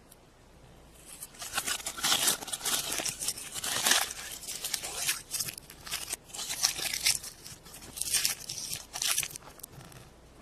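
Foil crinkles and rustles as it is peeled off a chocolate egg.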